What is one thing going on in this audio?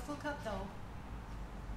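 A young woman speaks calmly, close by.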